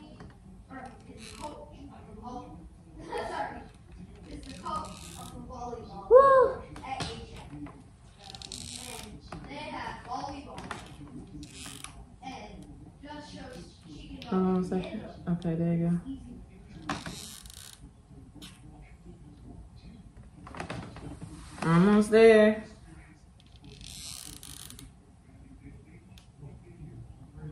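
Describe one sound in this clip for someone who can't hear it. A young woman talks in a relaxed way close by.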